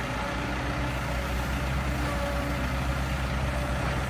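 Soil pours from an excavator bucket into a dump truck's bed.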